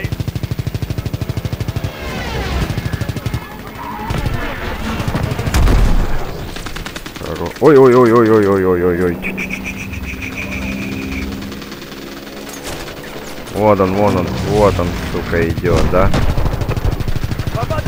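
A propeller fighter plane's engine drones.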